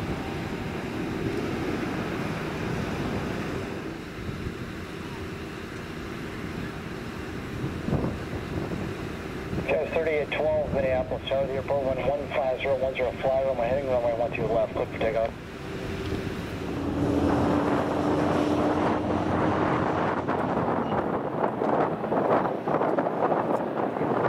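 A jet airliner's engines hum steadily as it taxis nearby.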